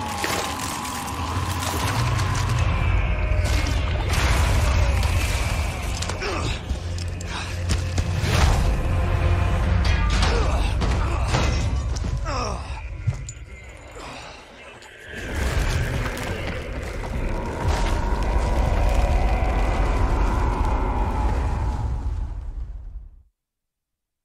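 Heavy rubble crashes and tumbles down loudly.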